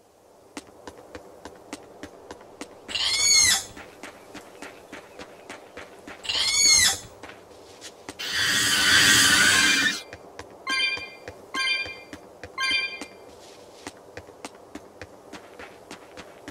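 Quick footsteps patter on a stone path.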